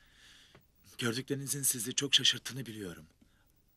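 A young man speaks firmly, close by.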